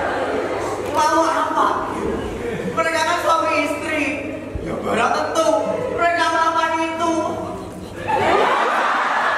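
A young man sings loudly on a stage.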